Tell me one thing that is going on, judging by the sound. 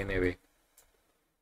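A man speaks briefly into a microphone, close up.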